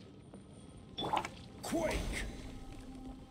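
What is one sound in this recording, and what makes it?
A sword swishes and strikes with a ringing clang.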